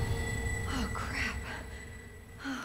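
A young woman speaks in a shaken voice.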